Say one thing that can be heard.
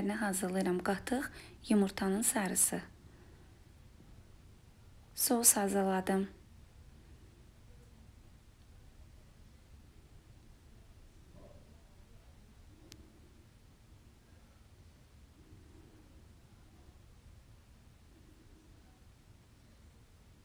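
A spoon stirs and scrapes softly in a glass bowl.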